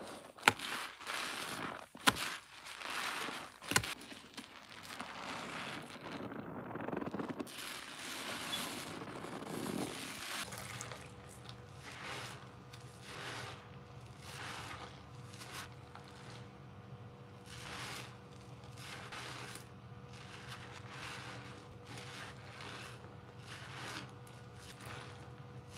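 A soapy sponge squelches and squishes as it is squeezed in water.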